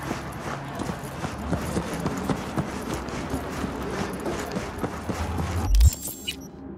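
Footsteps hurry along hard pavement.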